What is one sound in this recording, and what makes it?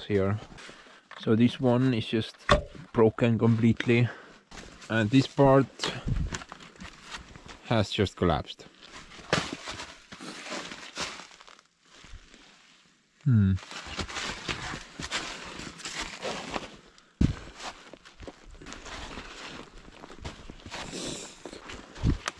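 Footsteps crunch through snow close by.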